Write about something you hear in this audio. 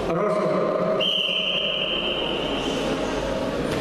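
A referee blows a long whistle.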